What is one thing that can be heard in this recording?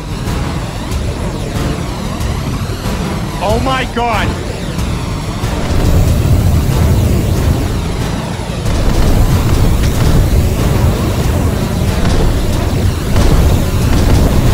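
A heavy engine rumbles loudly.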